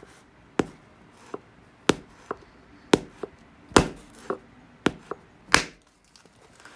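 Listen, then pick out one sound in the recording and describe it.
Sharp clicks and snaps ring out as flakes are pressed off a piece of stone glass.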